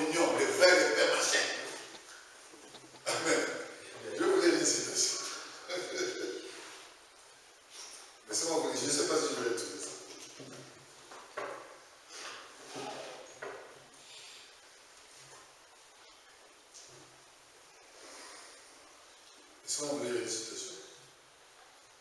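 A man speaks with animation in a room with a slight echo, pausing between phrases.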